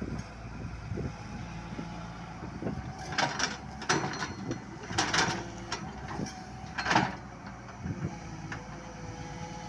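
An excavator's hydraulics whine and clank as its arm swings.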